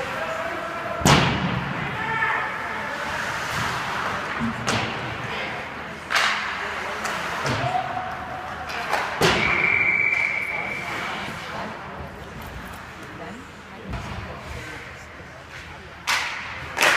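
Hockey sticks smack a puck on ice with sharp cracks.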